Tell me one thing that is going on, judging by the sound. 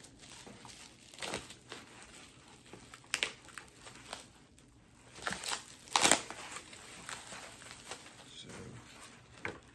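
Cardboard pieces click and tap as they are handled.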